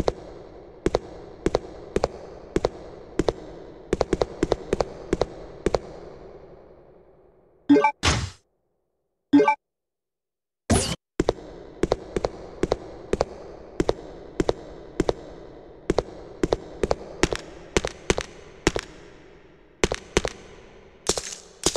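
Footsteps echo steadily on a hard floor.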